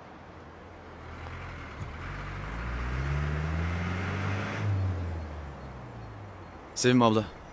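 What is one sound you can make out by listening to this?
A vehicle engine rumbles as it drives up and slows to a stop.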